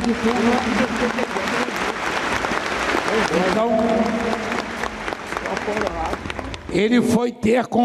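A large crowd cheers and sings in a big echoing hall.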